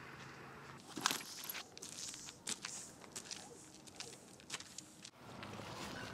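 Footsteps crunch on gravel close by.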